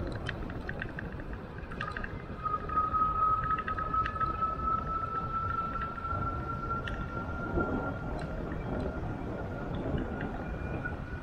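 Wind rumbles and buffets steadily while moving along outdoors.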